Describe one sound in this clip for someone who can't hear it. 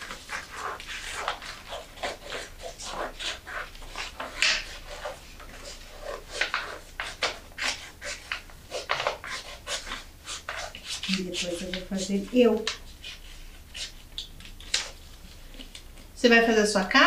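Scissors snip and cut through paper in quick, repeated bursts.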